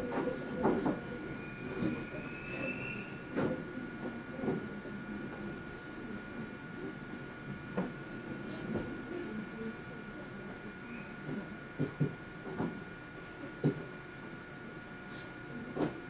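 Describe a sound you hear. A train hums steadily.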